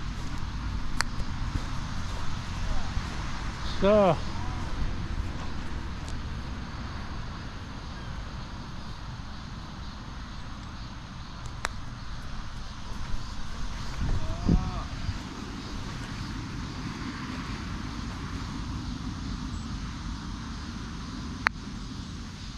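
A park golf club strikes a ball with a sharp click.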